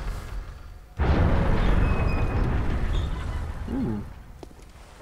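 A heavy wooden gate creaks open.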